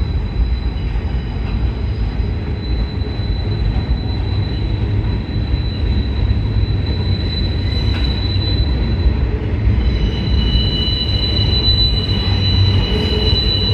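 A freight train rumbles past steadily, with a deep low roar.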